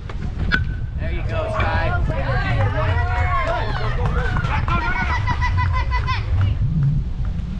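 Young players shout and cheer excitedly nearby.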